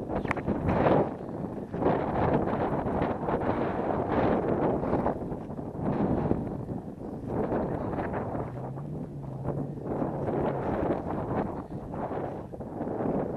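Wind buffets and rumbles loudly outdoors.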